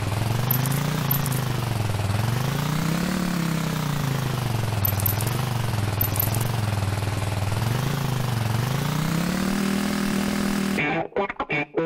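A small motorbike engine drones, rising and falling in pitch as it revs.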